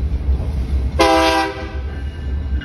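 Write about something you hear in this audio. A train horn blares loudly for a moment.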